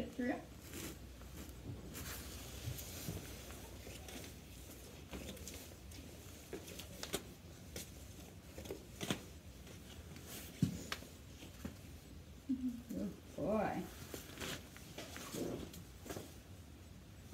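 Harness straps rustle and buckles clink as a pony is tacked up.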